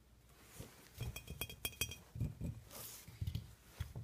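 Fingernails tap on a glass jar.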